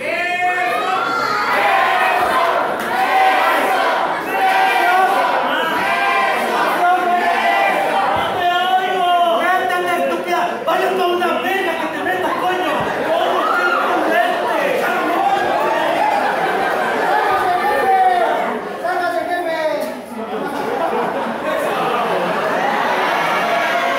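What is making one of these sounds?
A crowd cheers and chants loudly in a large echoing hall.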